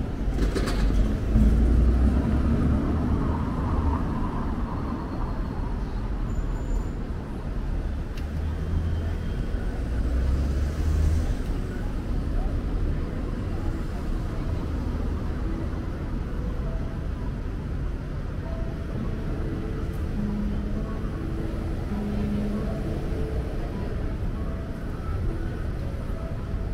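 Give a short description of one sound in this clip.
Street traffic rumbles steadily in the open air nearby.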